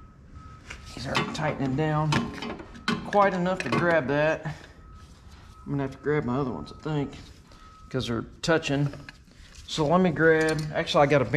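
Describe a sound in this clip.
A man talks calmly up close.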